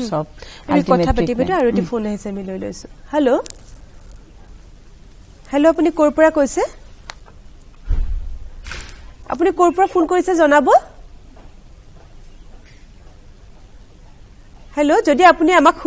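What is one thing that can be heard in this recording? A woman speaks calmly and clearly into a microphone, in short bursts with pauses.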